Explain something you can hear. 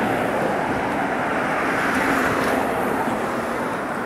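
A van drives past close by.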